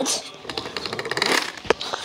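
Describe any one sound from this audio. A toy train rolls along a plastic track.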